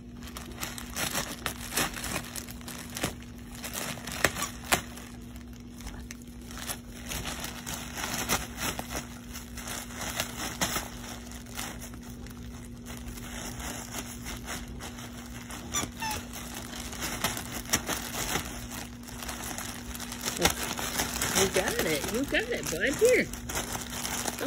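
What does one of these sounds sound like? A plastic bag crinkles and rustles as a dog tears at it.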